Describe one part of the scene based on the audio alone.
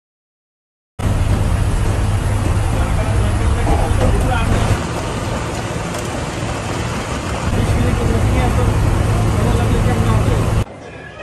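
A vehicle drives fast along a road with a loud steady rumble.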